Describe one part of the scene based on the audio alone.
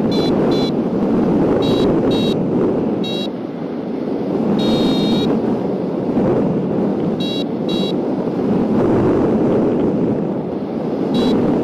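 Wind rushes loudly and steadily past the microphone.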